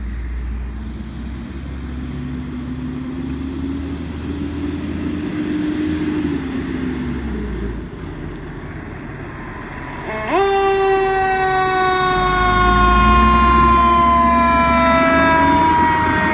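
A fire engine's siren wails, rising and falling.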